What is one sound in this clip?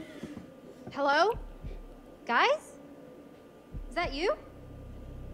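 A young woman calls out questioningly.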